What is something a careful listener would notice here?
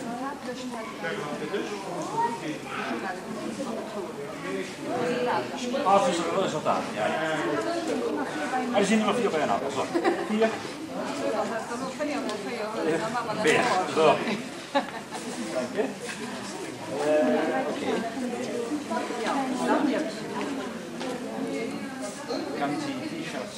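A crowd of children and adults chatters in an echoing hall.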